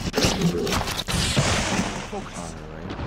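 An electric blast crackles and booms.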